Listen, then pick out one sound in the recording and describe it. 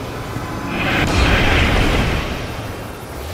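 Magic beams blast with a loud whooshing burst.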